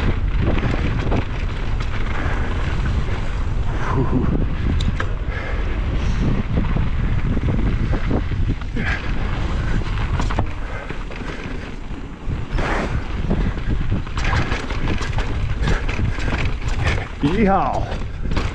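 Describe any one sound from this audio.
Wind rushes loudly past the rider on a fast downhill ride.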